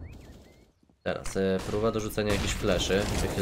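A grenade bursts with a sharp bang.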